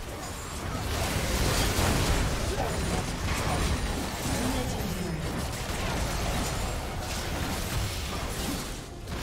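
Spell effects crackle and blast in a game battle.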